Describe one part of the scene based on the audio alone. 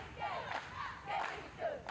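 A woman claps her hands.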